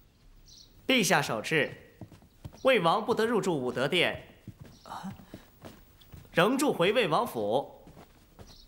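A man reads aloud in a clear, measured voice.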